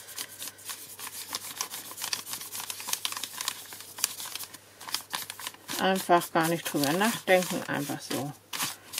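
Paper rustles and scrapes as hands rub and smooth it.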